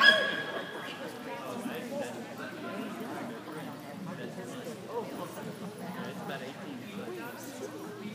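A woman calls out in a large echoing hall.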